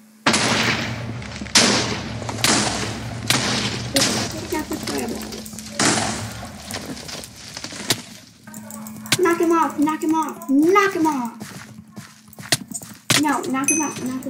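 Sword blows strike with sharp, repeated thuds.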